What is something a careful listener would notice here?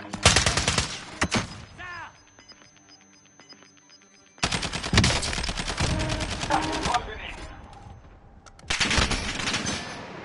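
Rapid gunfire bursts crack out nearby.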